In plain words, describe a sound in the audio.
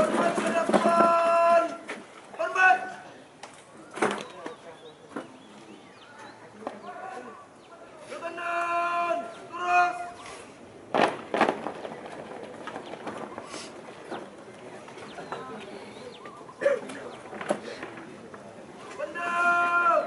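A young man shouts drill commands outdoors.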